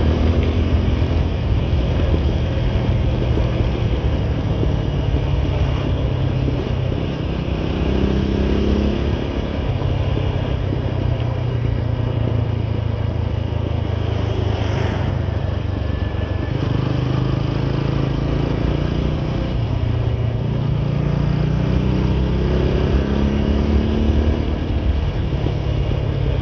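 A motorcycle engine hums steadily close by, rising and falling as the rider speeds up and slows down.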